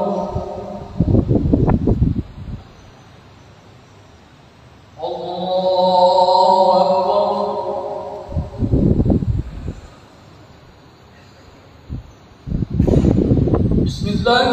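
A large crowd of worshippers rustles as they move together.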